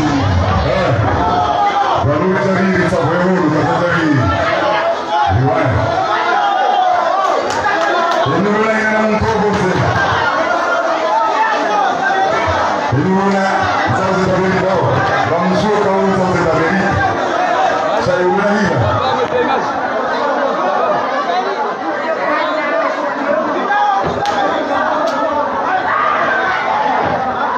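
A man sings into a microphone over loudspeakers.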